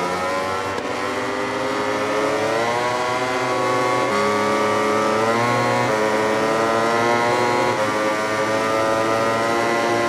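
A racing motorcycle engine whines loudly, rising in pitch as it speeds up and dropping briefly at each gear change.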